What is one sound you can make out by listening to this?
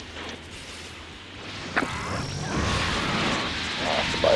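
An energy blast whooshes through the air.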